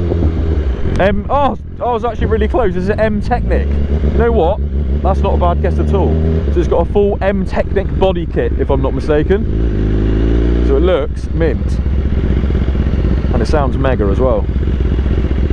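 A motorcycle exhaust pops and crackles as it slows.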